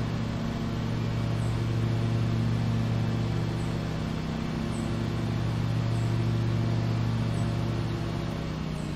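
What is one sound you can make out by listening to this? Mower blades cut through thick grass with a steady whirr.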